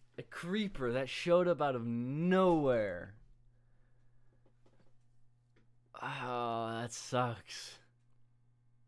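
A young man speaks with animation into a close microphone.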